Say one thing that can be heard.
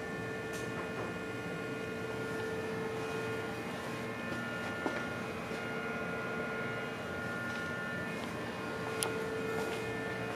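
A machine hums steadily with a faint high whine.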